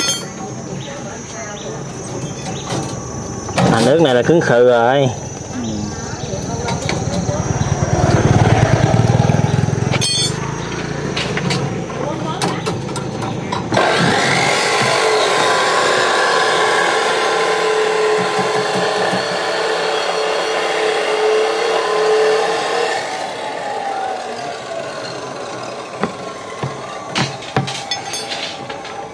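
Metal wire mesh clinks and rattles as it is handled.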